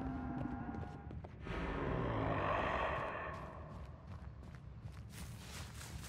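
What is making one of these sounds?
Footsteps crunch over leaves and debris.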